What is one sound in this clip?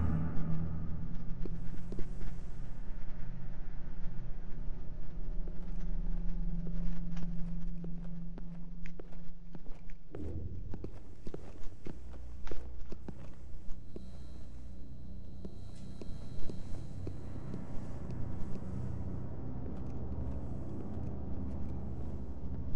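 Soft footsteps patter on a hard floor.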